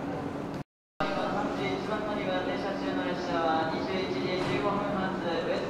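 People chatter nearby.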